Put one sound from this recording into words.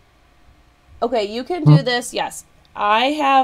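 A young woman speaks brightly and close to a microphone.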